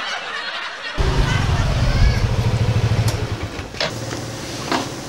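A scooter engine idles and rumbles close by.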